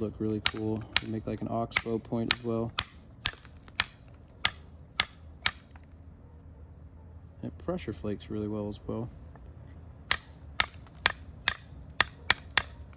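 A stone taps sharply against antler in a quick series of clicking knocks.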